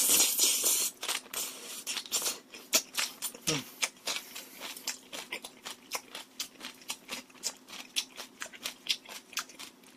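A young man chews food with wet smacking sounds.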